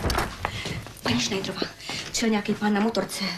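A woman speaks anxiously and quickly, close by.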